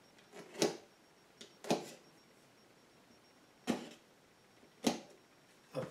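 A screwdriver clicks and knocks against a plastic case.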